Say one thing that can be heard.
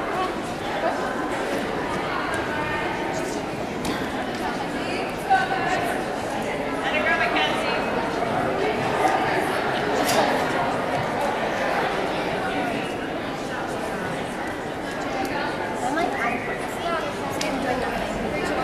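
A crowd of spectators chatters throughout a large echoing hall.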